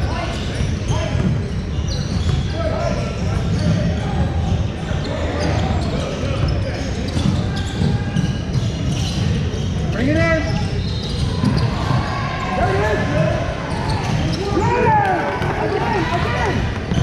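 Basketball players' sneakers squeak on a gym floor.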